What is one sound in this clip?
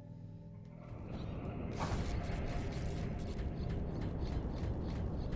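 Quick footsteps patter across rocky ground.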